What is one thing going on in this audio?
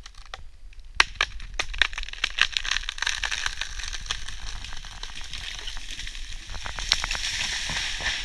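A tree trunk cracks and splits sharply as it topples.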